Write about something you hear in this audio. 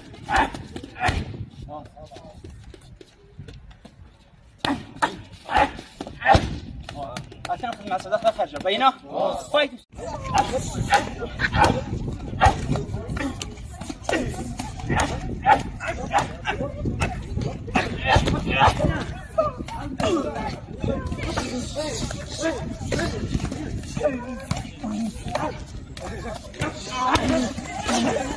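Kicks and punches thud sharply against padded mitts.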